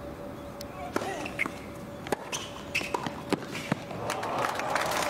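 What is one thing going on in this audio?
A tennis ball is struck sharply with rackets and bounces on a hard court.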